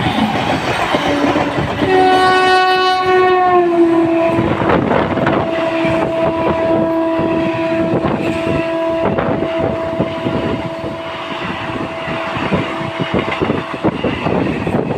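A train horn blares loudly for a long time, dropping in pitch as it passes.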